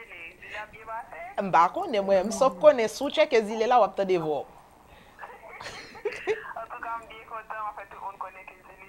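A woman speaks animatedly into a microphone, close by.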